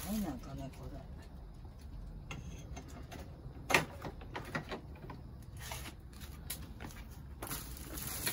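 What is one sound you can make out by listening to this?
Metal parts clink and tap together.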